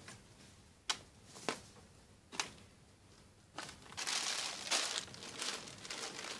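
Fabric rustles as clothes are moved and laid down.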